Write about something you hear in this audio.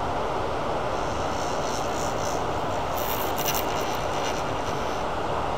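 A metal tool scrapes against a spinning workpiece in short bursts.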